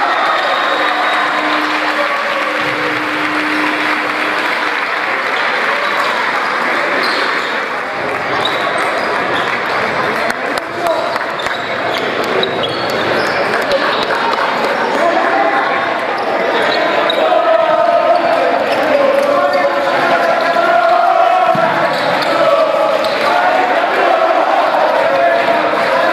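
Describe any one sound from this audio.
A crowd of young men cheers and shouts in an echoing hall.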